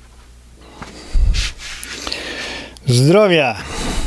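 A middle-aged man speaks loudly and forcefully into a microphone close by.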